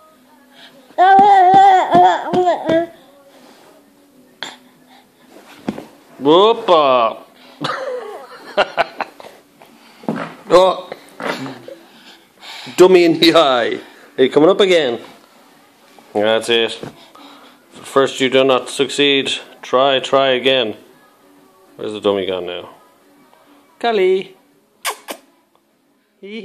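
A baby babbles and squeals close by.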